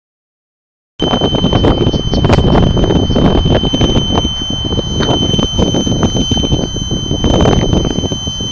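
Wind buffets loudly across the microphone outdoors.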